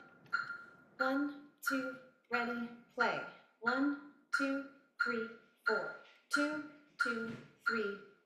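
A violin's strings are plucked, one note at a time in a steady rhythm.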